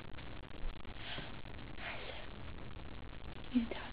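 A baby coos and babbles softly nearby.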